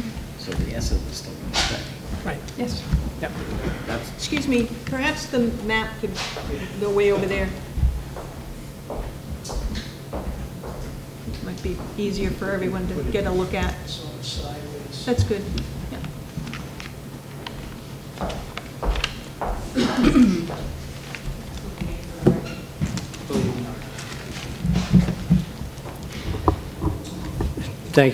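An elderly man speaks calmly at a microphone.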